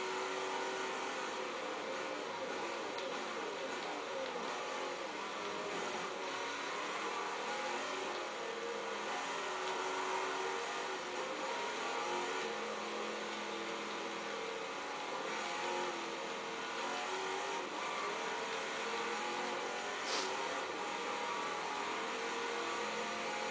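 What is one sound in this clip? A racing car engine roars and shifts pitch through a loudspeaker.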